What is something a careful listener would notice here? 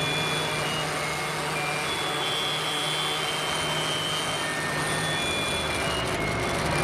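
High steady electronic tones sound over a dense hiss.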